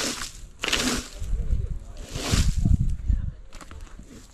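A rake scrapes and rustles across grass.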